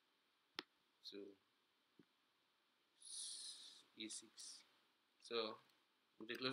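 A young man speaks calmly in short phrases, close to a microphone.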